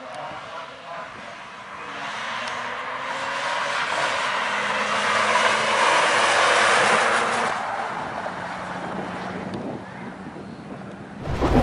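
A car engine roars as the car accelerates hard, passes close and fades into the distance.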